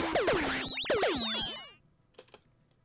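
Electronic synth tones sweep and warble loudly, then cut off abruptly.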